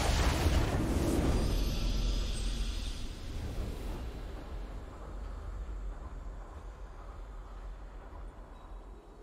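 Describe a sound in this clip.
A triumphant game fanfare swells and slowly fades.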